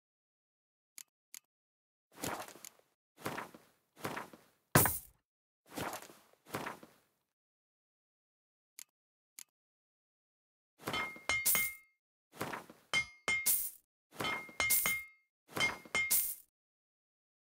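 Soft game menu clicks and whooshes sound one after another.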